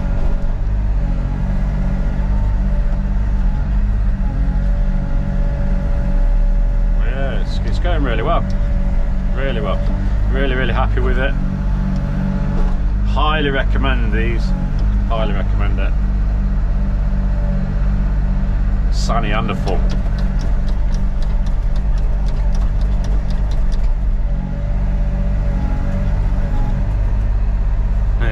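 An excavator's diesel engine rumbles steadily close by.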